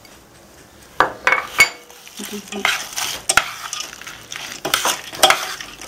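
A metal spoon clinks against a metal pot.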